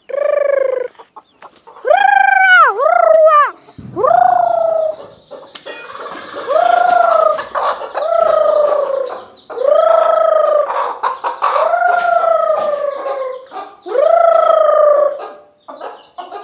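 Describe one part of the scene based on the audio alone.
A hen squawks in loud, falling calls.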